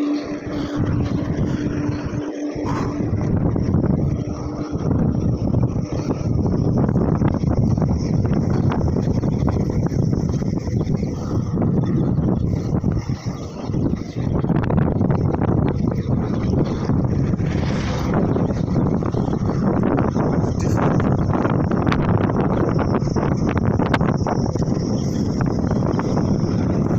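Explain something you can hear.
Wind rushes loudly past a bicycle rider outdoors.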